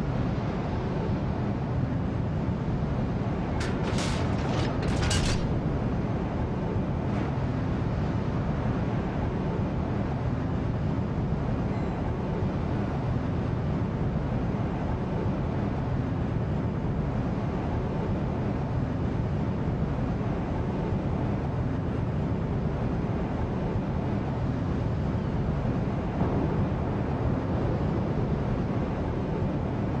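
A battleship's engines rumble low as it ploughs through open water.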